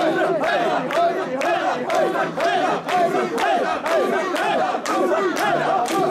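Hands clap in a steady rhythm.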